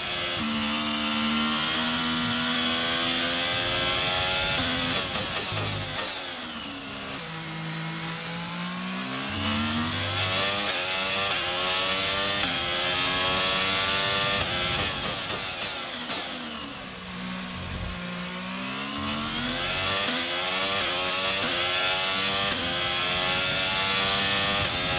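A racing car engine screams at high revs, dropping in pitch as it brakes and rising again as it speeds up.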